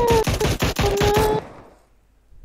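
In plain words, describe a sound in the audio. Rapid gunfire cracks in quick bursts.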